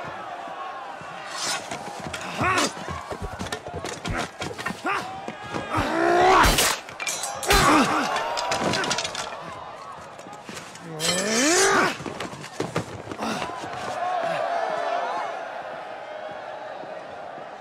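A large crowd shouts and cheers in an open arena.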